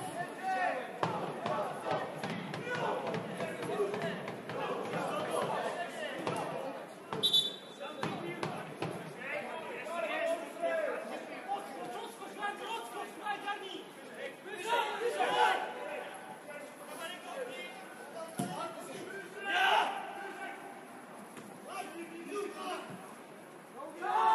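Men shout and call to each other at a distance during a football match outdoors.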